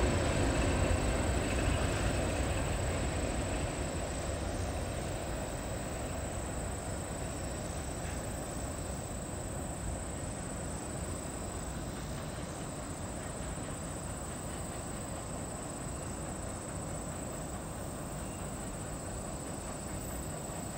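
A freight train rumbles along the tracks, slowly fading into the distance.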